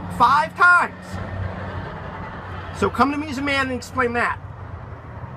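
A young man speaks loudly and animatedly close by.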